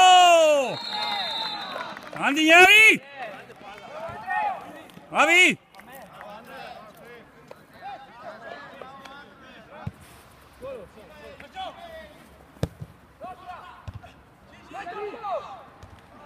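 Young men shout loudly to each other outdoors.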